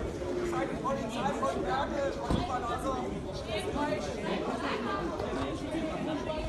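A crowd of men and women talks and shouts outdoors nearby.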